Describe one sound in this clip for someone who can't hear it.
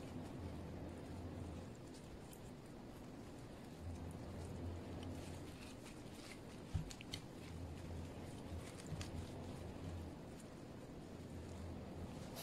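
Plastic-gloved fingers peel the shell off a cooked prawn.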